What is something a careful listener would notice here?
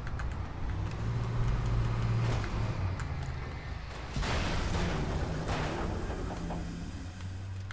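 A flare bursts and hisses loudly.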